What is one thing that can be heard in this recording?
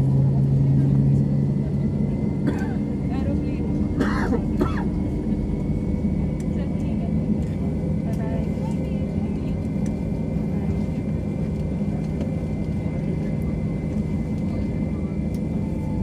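Jet engines hum steadily inside an airliner cabin as it taxis.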